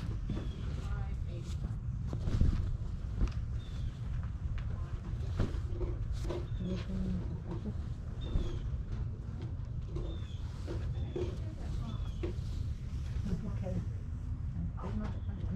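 Hands rustle through a pile of cotton t-shirts.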